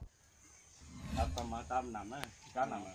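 A man speaks into a microphone with animation, close by.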